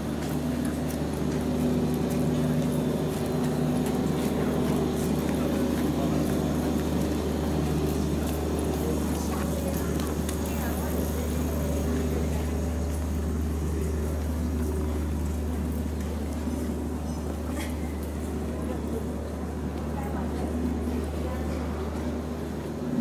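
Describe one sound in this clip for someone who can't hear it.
A low steady rumble of city street noise fills the air.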